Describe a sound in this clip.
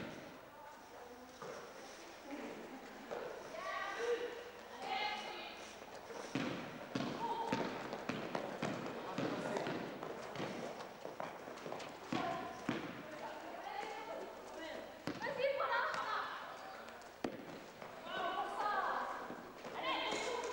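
Young women shout and call to each other in a large echoing hall.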